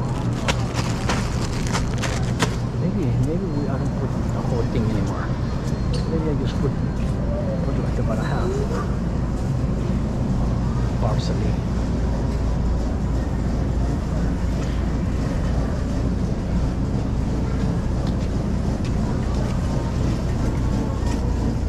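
A shopping cart rattles as it rolls across a hard floor.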